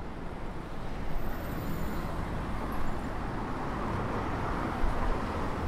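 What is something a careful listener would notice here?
A car passes close by with rising tyre noise.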